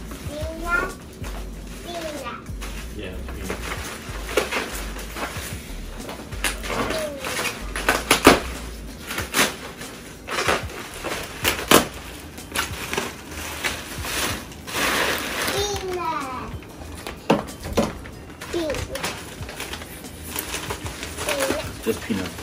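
Plastic wrapping crinkles and rustles as it is pulled apart.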